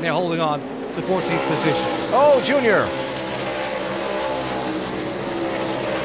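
Tyres screech as a race car spins out.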